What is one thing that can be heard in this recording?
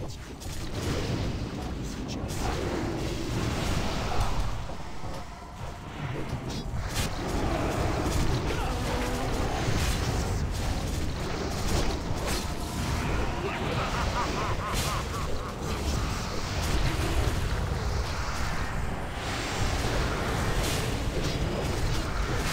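Spells and weapons crash and blast in a fast fantasy battle.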